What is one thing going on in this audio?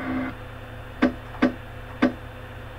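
Menu selections beep in short blips.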